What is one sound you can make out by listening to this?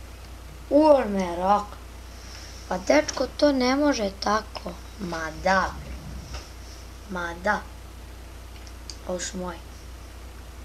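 A boy talks with animation into a close microphone.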